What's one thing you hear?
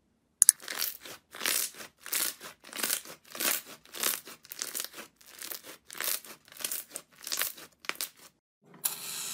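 Sticky slime squelches and crackles as hands squeeze and knead it.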